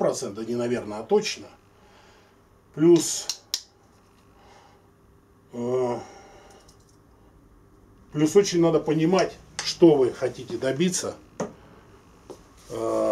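An older man talks calmly and close by, in short bursts with pauses.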